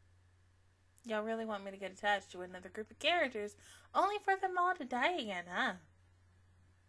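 A young woman speaks with animation close into a microphone.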